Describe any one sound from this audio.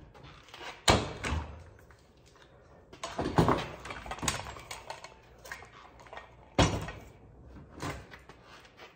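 Metal tools clatter and knock against a workbench.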